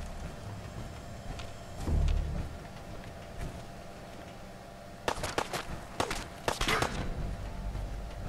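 Heavy metal footsteps clank.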